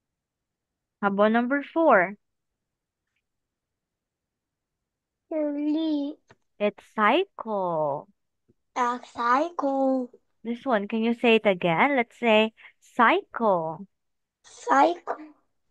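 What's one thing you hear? A young woman speaks clearly and slowly through an online call.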